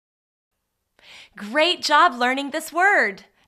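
A young woman speaks clearly and brightly into a close microphone.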